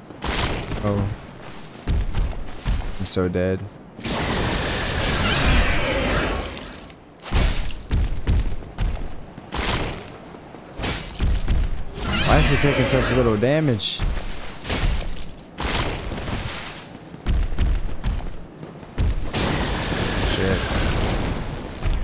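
Sword blows strike with heavy thuds.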